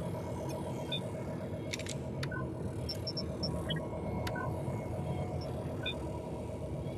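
Short electronic beeps chirp from a control console.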